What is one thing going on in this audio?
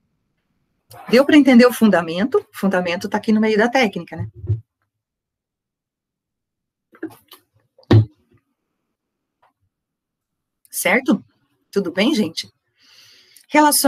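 A woman speaks calmly through a computer microphone in an online call, with pauses.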